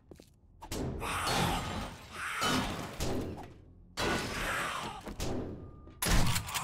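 A pickaxe strikes a wooden door with heavy thuds.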